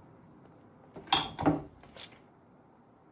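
Objects rustle and clatter as a container is searched.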